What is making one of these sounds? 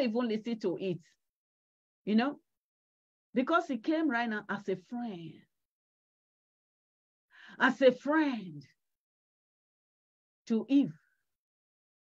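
A middle-aged woman speaks with animation through an online call, in short phrases with pauses.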